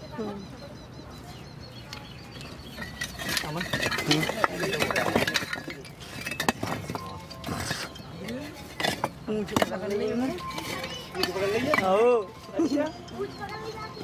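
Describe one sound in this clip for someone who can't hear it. Bricks clink and knock as a metal bar pries them loose.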